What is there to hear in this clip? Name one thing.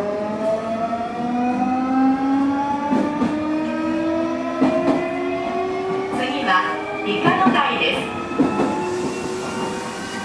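An idling electric train gives off a steady whine that slowly rises in pitch.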